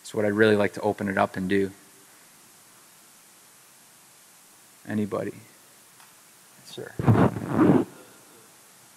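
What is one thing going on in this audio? A man speaks through a microphone in bursts, with pauses between phrases.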